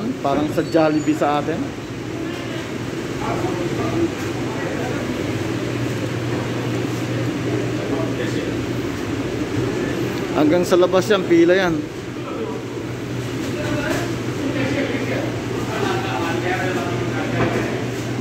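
Voices of a crowd murmur in a large, echoing indoor space.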